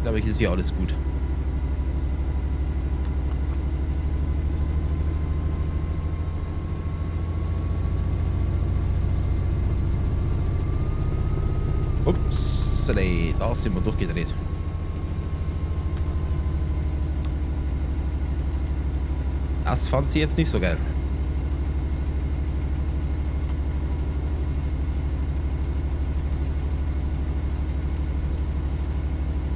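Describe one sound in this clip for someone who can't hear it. A train engine hums and rumbles steadily.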